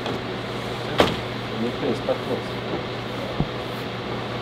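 Footsteps sound on stairs.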